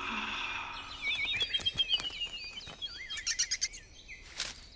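Birds chirp and twitter nearby.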